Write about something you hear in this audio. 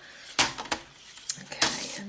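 A paper trimmer blade slides and cuts.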